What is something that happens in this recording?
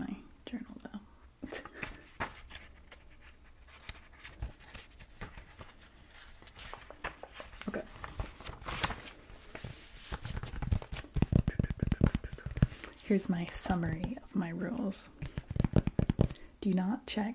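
Fingers tap and rustle on a notebook cover close to a microphone.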